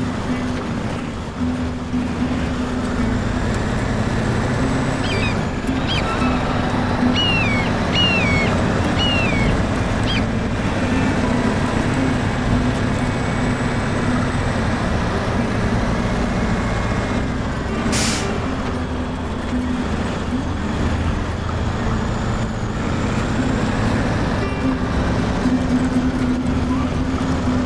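Big tyres crunch over dirt and sand.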